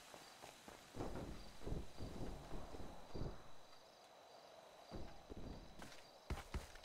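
Heavy loads thump onto a truck bed.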